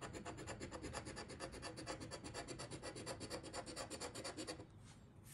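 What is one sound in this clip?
A coin scratches rapidly across a scratch card, close by.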